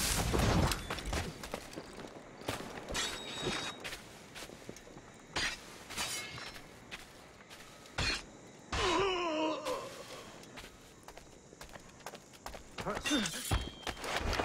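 Soft footsteps tap on stone.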